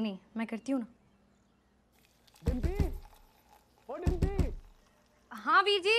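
Water pours from a kettle into a glass.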